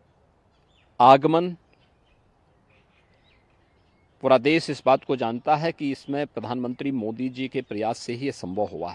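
A middle-aged man speaks calmly into close microphones.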